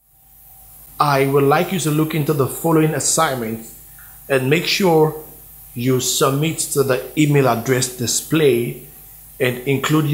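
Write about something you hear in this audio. A young man speaks calmly and clearly into a nearby microphone.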